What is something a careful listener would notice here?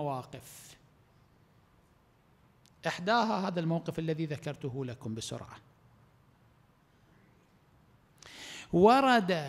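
A middle-aged man speaks slowly and with feeling into a microphone, in a room with some echo, pausing between phrases.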